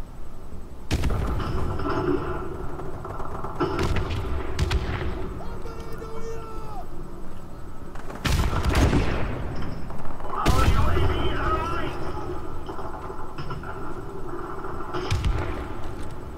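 Gunshots from a video game crack in short bursts.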